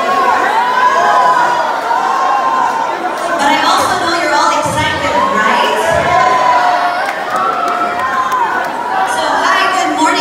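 Upbeat music with singing plays loudly over loudspeakers in a large echoing hall.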